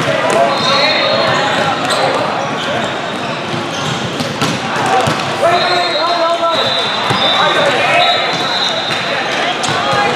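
A crowd chatters steadily in the background.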